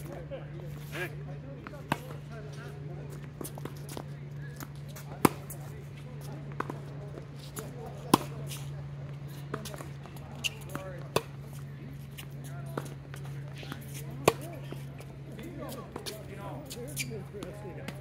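Tennis balls pop off racquets in a rally outdoors.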